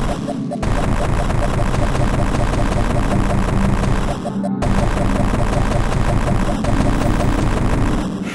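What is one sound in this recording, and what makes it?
A buzzing energy beam fires in short bursts.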